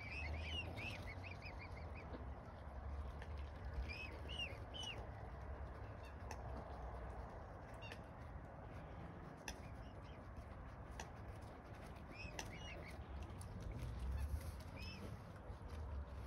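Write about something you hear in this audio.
Swans rustle their feathers while preening.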